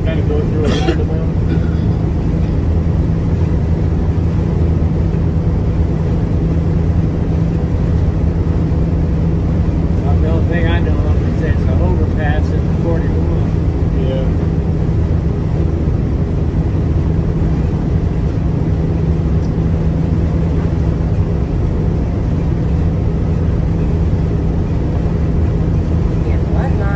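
A large vehicle's engine hums steadily from inside the cab.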